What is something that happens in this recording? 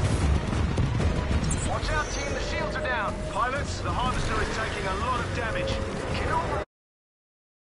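Explosions rumble loudly.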